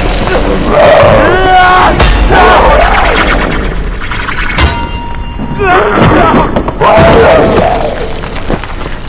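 A young man cries out in pain.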